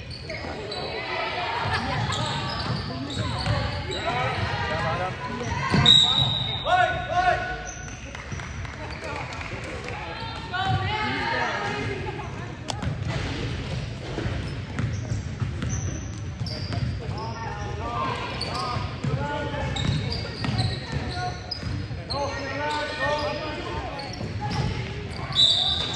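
Young women shout and call out across a large echoing gym.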